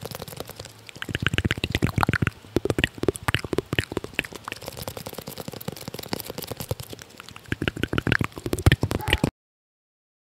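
A young man makes soft mouth sounds close to a microphone.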